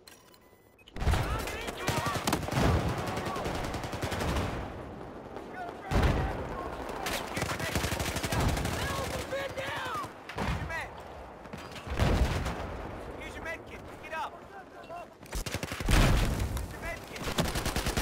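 Gunfire crackles in bursts.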